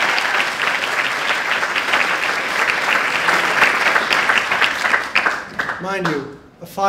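An audience applauds in a large room.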